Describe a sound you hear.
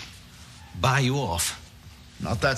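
An elderly man speaks firmly.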